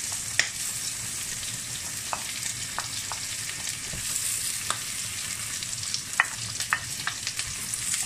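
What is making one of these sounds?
Chopped vegetables slide off a plate into a frying pan.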